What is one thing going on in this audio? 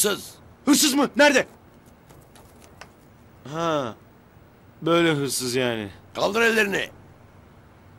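A young man shouts loudly outdoors.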